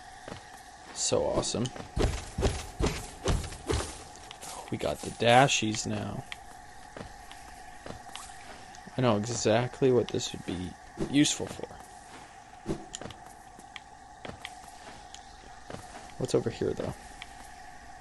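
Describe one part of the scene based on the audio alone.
Quick blade swishes and hits ring out in bursts.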